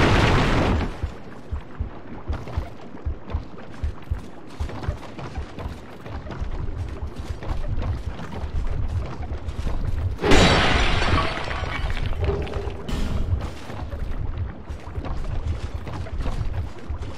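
Heavy footsteps clunk on wooden boards.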